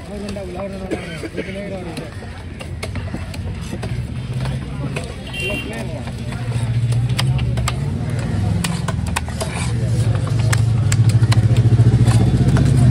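A heavy blade chops through fish onto a wooden block with sharp thuds.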